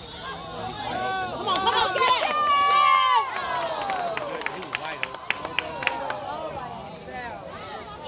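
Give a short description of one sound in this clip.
Spectators cheer and shout during a play.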